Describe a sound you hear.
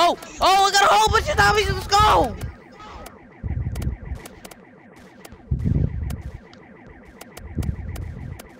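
Gunshots from a video game crack in quick bursts.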